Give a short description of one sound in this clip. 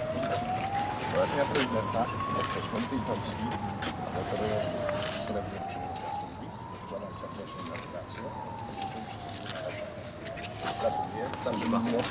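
A man speaks quietly close by.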